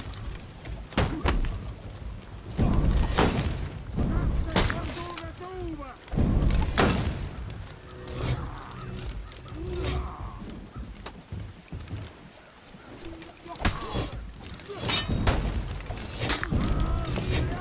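Metal weapons clash and clang in a sword fight.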